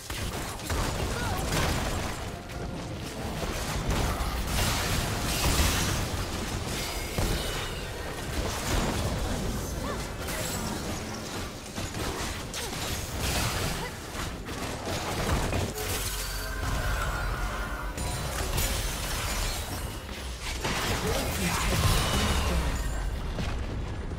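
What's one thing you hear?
Video game spell effects whoosh, crackle and burst.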